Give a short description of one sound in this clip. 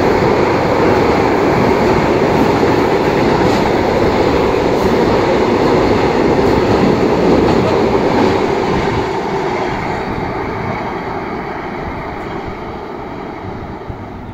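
Freight wagons rumble and clatter past on rails close by.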